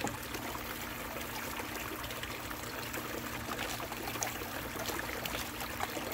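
A small pump hums steadily.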